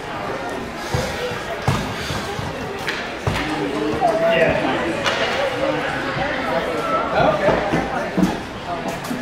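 Hockey sticks knock sharply against a puck.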